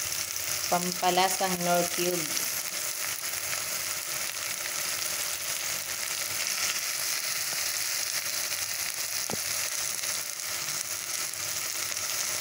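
Onions sizzle and hiss steadily as they fry in a pot.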